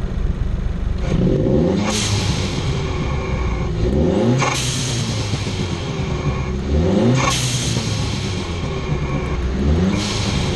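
A car engine revs up sharply and drops back several times.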